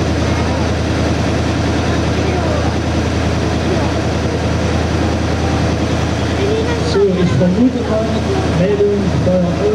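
A crowd of adults and children murmurs and talks outdoors.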